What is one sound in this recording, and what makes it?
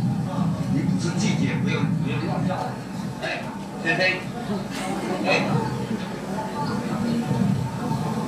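A man shouts angrily, heard through a loudspeaker.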